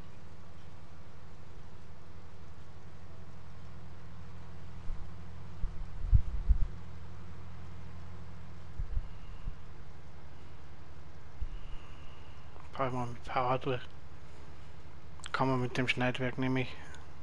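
A combine harvester engine drones low and steady.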